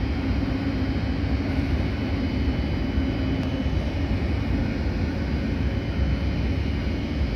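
A train rumbles slowly past with a steady low hum.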